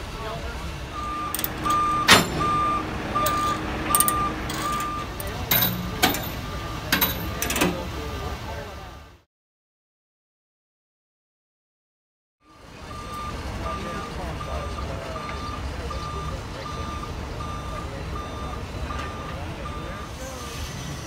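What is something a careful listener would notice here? A truck's warning alarm beeps in a steady rhythm.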